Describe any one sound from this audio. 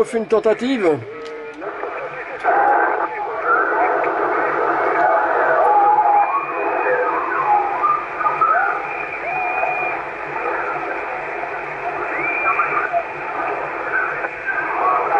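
A man's voice comes through a radio loudspeaker, thin and crackly with static.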